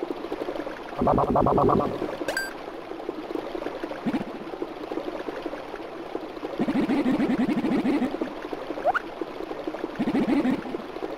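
Rapid chattering blips sound in short bursts.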